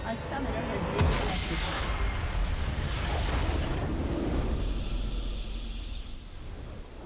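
A large structure explodes with a deep, rumbling blast.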